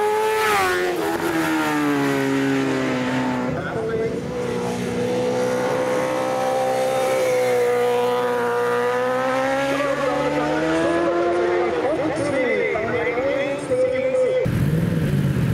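A racing motorcycle engine roars past at high speed, its pitch rising and falling through the gears.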